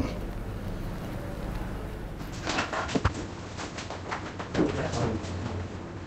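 A metal spatula scrapes and taps against a cake.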